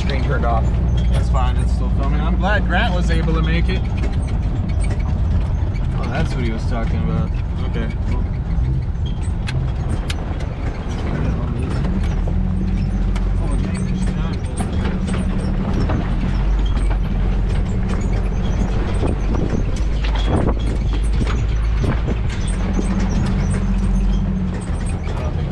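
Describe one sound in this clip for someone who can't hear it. A vehicle's engine rumbles steadily from inside the cab.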